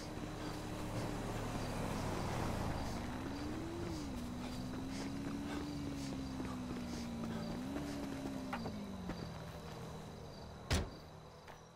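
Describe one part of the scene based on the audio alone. A car engine hums as a car drives past.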